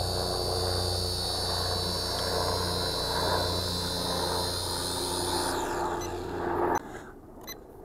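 A small drone's propellers whir steadily with a high buzzing whine.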